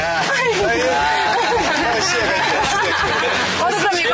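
A young woman laughs nearby.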